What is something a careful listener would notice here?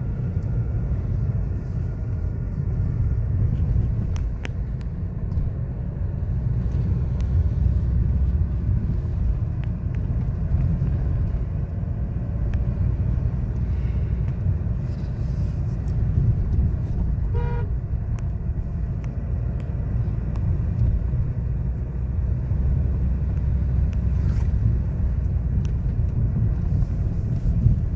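Tyres roll over a road with a steady rushing noise.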